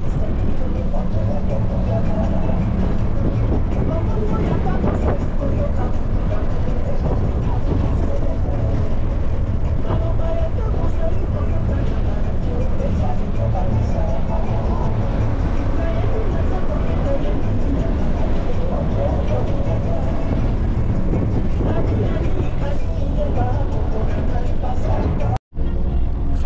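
A vehicle's engine hums and its tyres rumble steadily on the road.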